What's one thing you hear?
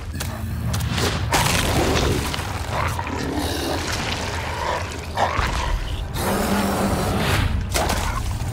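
A large creature roars and growls loudly.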